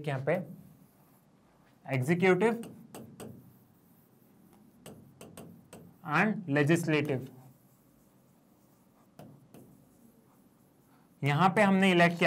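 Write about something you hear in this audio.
A marker squeaks on a board as a man writes.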